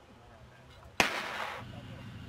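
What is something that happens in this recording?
A football is kicked with a sharp thump outdoors.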